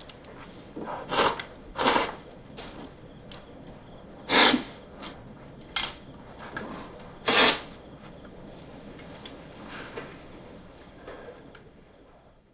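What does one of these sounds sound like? A young man eats noisily, slurping food from a bowl.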